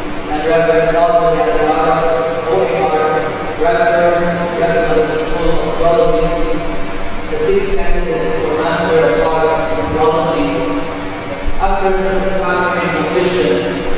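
A young man speaks steadily through a microphone.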